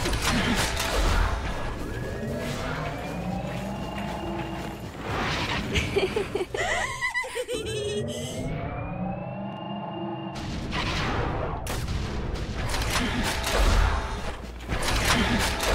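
Magic blasts and weapon hits crackle and thud in a busy fight.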